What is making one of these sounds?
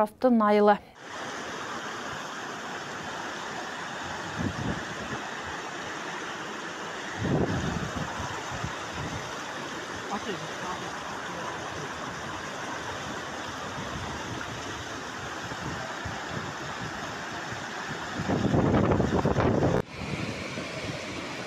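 Muddy floodwater rushes and roars loudly.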